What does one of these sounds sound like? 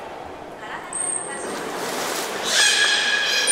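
Water splashes loudly as a whale thrashes near the edge.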